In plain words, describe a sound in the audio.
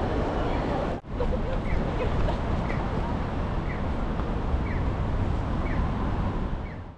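Road traffic rumbles outdoors.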